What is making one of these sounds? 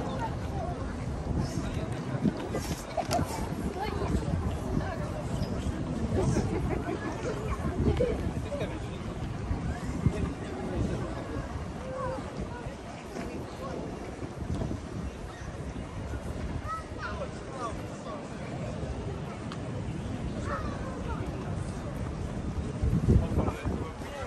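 Many people chatter nearby and farther off.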